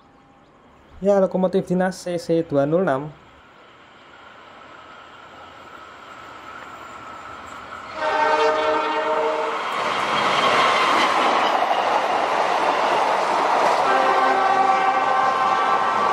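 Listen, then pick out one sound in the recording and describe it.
A train horn blares in short, repeated blasts.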